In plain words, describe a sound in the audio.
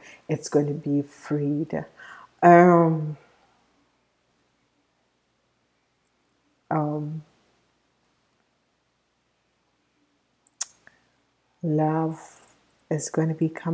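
A woman talks calmly and closely into a microphone, with pauses.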